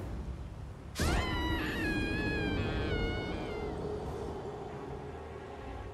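A low, ringing tone sounds suddenly and slowly fades.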